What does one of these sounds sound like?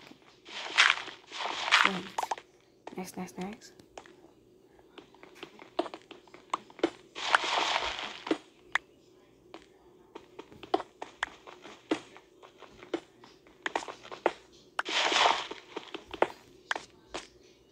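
A pickaxe chips and knocks at stone, with sharp repeated taps.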